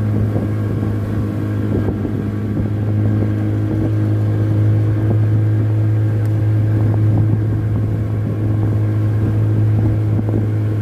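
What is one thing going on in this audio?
Water splashes and rushes along a boat's hull.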